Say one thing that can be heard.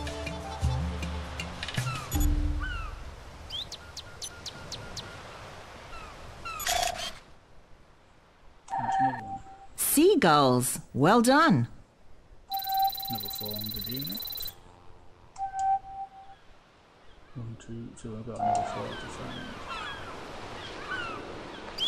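Seagulls cry in the open air.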